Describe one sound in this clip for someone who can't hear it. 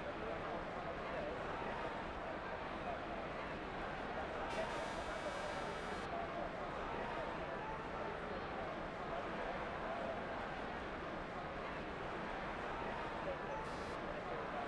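A crowd murmurs and chatters steadily nearby.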